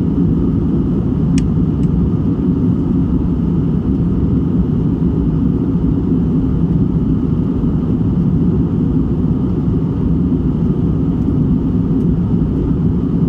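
Jet engines roar in a steady, deep drone inside an airliner cabin.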